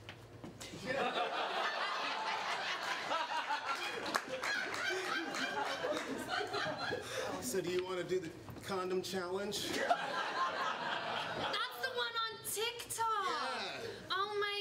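An audience laughs and cheers loudly.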